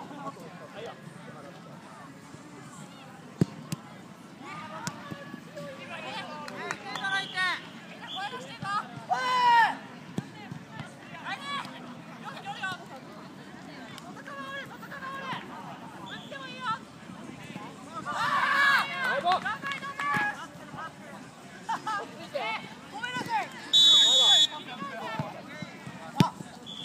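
Boys shout and call out to each other outdoors.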